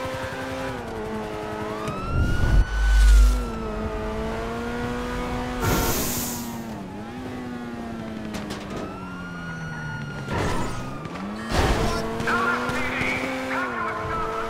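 A sports car engine roars, its pitch rising and dropping with gear changes.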